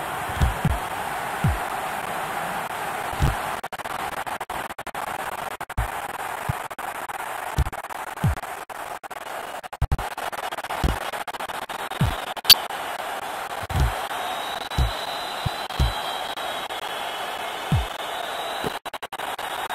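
A football is kicked with dull thumps, again and again.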